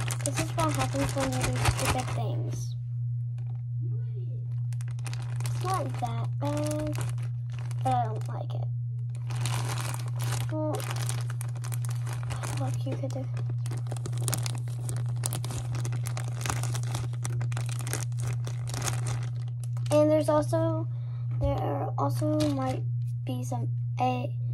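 A young girl talks close by.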